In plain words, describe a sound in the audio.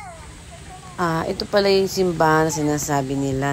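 A woman speaks close by, calmly.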